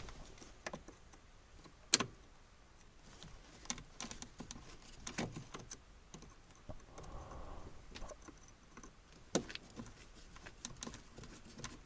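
A screwdriver scrapes and clicks against metal parts.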